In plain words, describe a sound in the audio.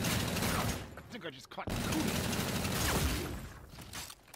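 Gunfire rings out in loud bursts.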